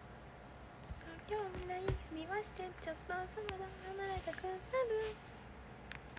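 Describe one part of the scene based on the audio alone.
A young woman speaks softly and brightly close to a phone microphone.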